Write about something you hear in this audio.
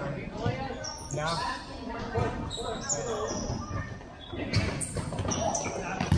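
Young boys shout and call out to each other in a large echoing hall.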